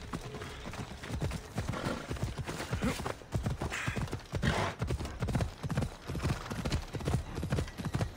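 Horse hooves thud at a gallop.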